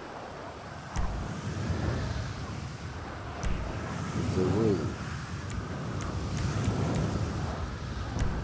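Short soft clicks sound as a game menu selection changes.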